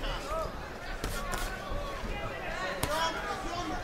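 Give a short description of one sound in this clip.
Boxing gloves thud against a body in quick blows.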